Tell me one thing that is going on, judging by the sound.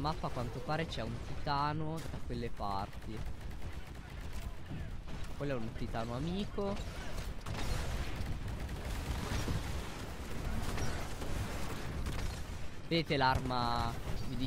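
Heavy guns fire and explosions rumble.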